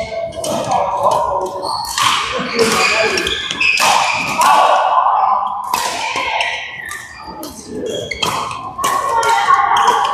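Shuttlecocks are struck with sharp pops of badminton rackets in a large echoing hall.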